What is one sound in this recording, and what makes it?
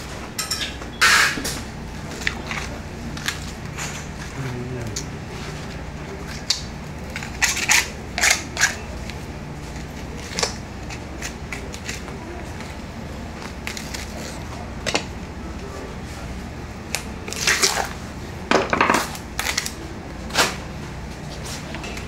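A knife cuts and scrapes through raw meat.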